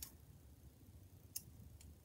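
Scissors snip a thread.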